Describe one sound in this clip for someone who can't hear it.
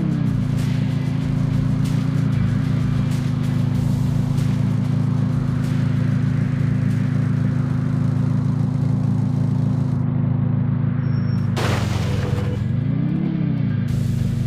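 A monster truck engine drones steadily and briefly revs higher.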